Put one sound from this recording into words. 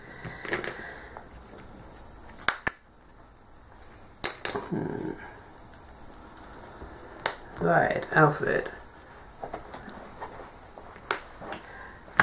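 Playing cards tap and slap onto a table.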